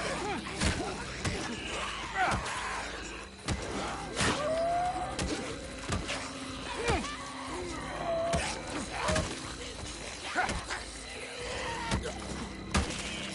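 Heavy blows thud and smack into bodies again and again.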